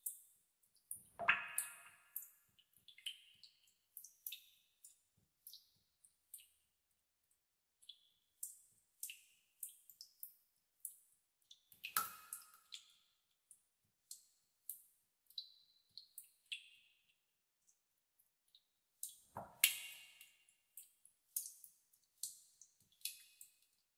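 Water drops plink and splash into still water.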